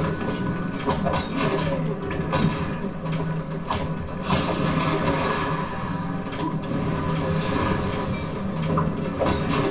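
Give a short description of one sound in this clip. Video game punches and hits land with sharp, quick thuds.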